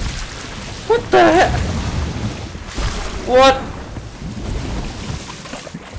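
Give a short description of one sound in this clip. Water splashes as it is thrown from a bucket.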